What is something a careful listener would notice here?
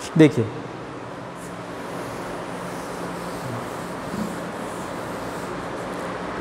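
Chalk scratches on a board.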